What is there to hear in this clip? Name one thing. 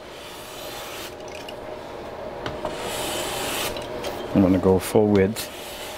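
A hand plane scrapes along a wooden edge.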